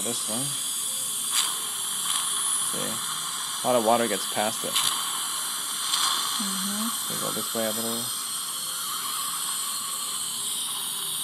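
A dental suction tube hisses and slurps steadily close by.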